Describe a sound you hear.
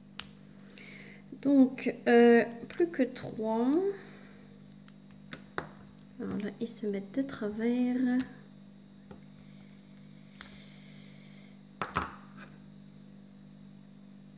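Small plastic beads tick softly as a pen tip presses them into place.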